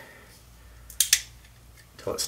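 A small pistol's mechanism clicks sharply.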